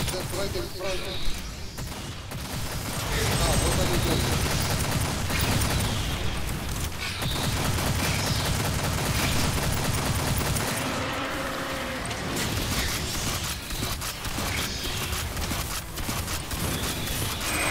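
Explosions boom with fiery roars.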